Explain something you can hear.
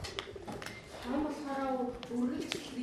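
A child speaks up clearly in a high voice.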